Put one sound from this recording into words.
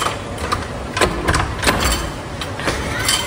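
A foot thumps against a wooden door.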